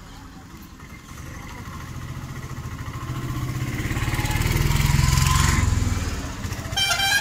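A truck engine rumbles as it drives past close by.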